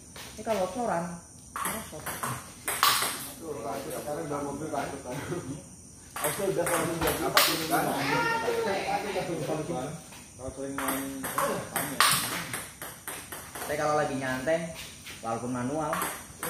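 A ping pong ball clicks back and forth on paddles and a table.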